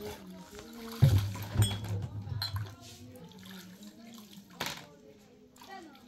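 Glasses clink against each other as they are rinsed.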